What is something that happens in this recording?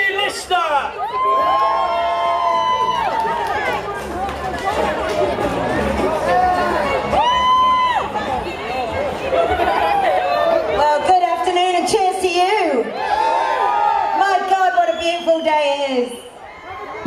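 A woman sings through loudspeakers.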